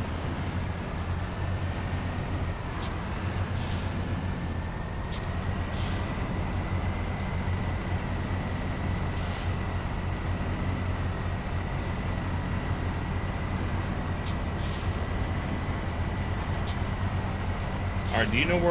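A heavy truck engine rumbles low and steady as the truck crawls through mud.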